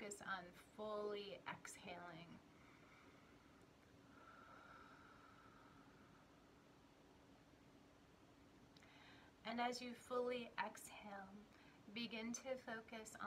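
A woman speaks calmly and close to a microphone, with a pause in the middle.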